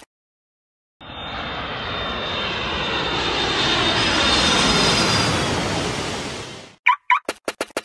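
A small plane engine roars and grows steadily louder.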